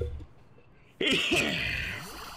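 A young man laughs into a close microphone.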